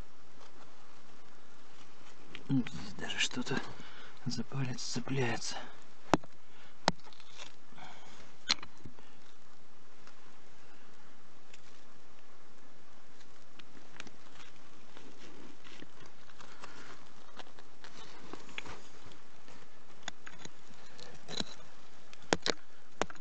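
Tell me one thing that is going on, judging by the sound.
A gloved hand scrapes and crumbles loose soil and rock.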